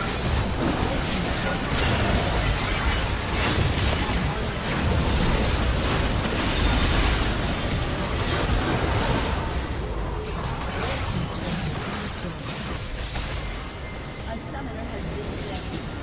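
Game spell effects crackle and blast in quick succession.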